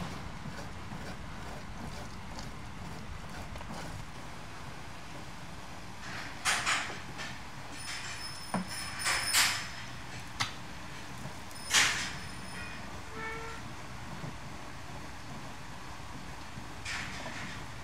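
Gloved hands squelch and rub wet fish in a metal bowl.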